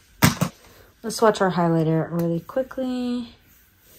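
A plastic compact case clicks open.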